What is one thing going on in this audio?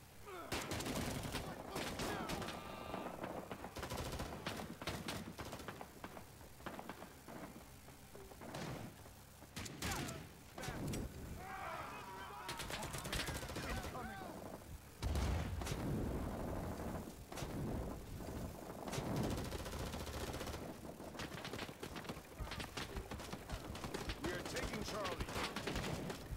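Gunfire crackles and booms in rapid bursts nearby.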